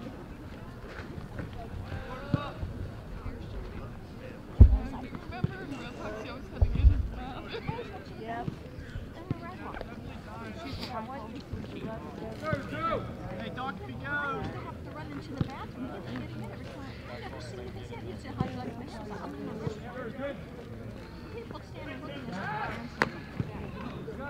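Young men chatter and call out nearby outdoors.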